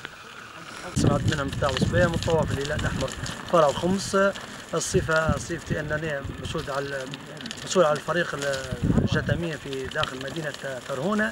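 A man speaks calmly and close by, muffled by a face mask.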